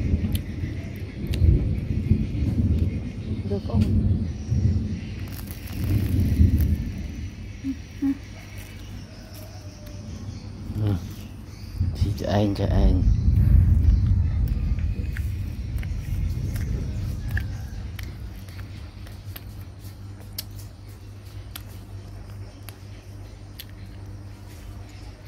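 A baby monkey sucks and slurps on a milk bottle.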